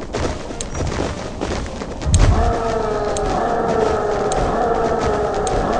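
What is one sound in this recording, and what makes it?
Heavy footsteps of a huge marching army thud steadily.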